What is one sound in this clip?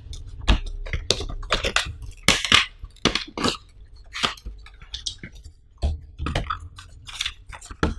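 A cardboard box slides open and its tray scrapes out.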